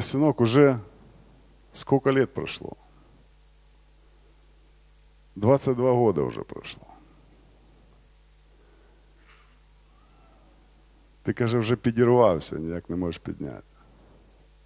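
A man speaks into a microphone with emphasis, in short bursts with long pauses, heard through loudspeakers in a large room.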